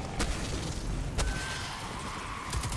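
An energy blast booms with a crackling burst.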